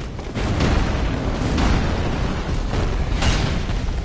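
A huge creature growls and roars loudly.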